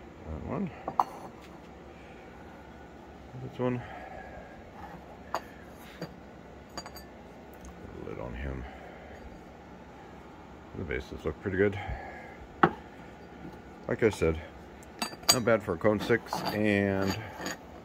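A ceramic lid clinks and scrapes against a pot.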